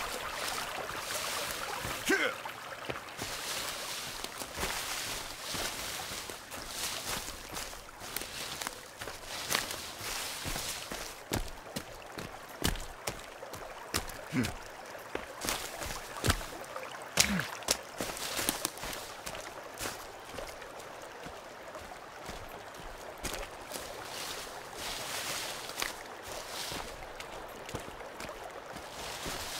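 Footsteps thud steadily through undergrowth.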